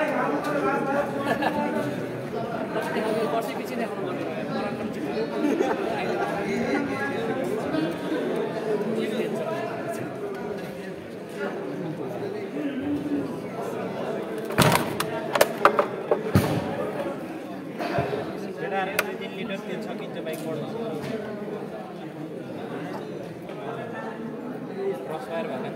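A crowd of people chatter at a distance in a large echoing hall.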